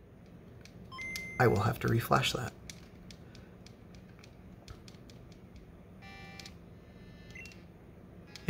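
A handheld game console plays short electronic beeps and chimes.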